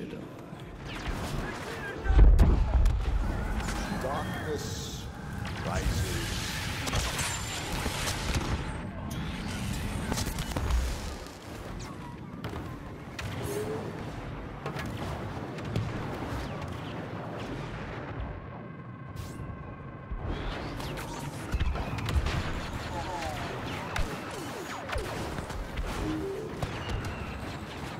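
Blaster shots crackle and zap in bursts.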